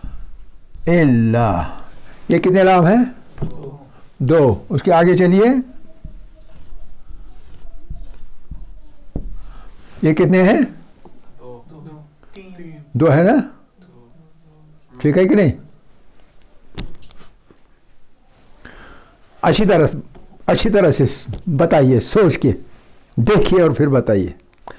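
An elderly man speaks with emphasis into a clip-on microphone, in bursts with pauses.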